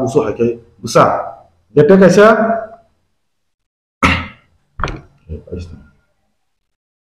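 A middle-aged man speaks calmly and closely into a microphone, in short bursts with pauses.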